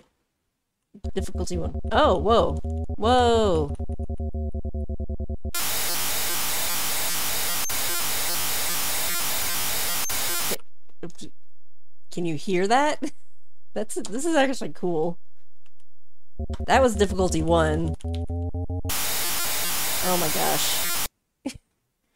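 A retro computer game plays harsh buzzing and hissing sound effects.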